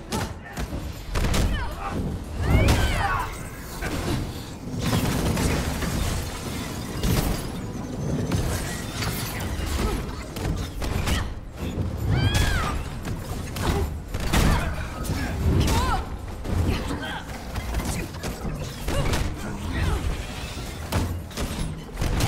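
Laser blasts zap and crackle in quick bursts.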